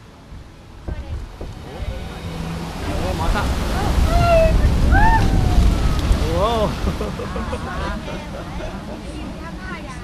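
Water rushes and splashes loudly beneath a boat sliding down a flume.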